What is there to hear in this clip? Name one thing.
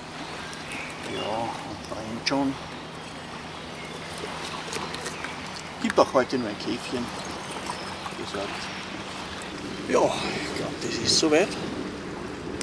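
A middle-aged man talks calmly outdoors.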